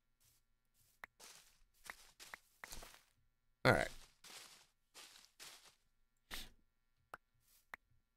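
Blocks break with short crunching pops.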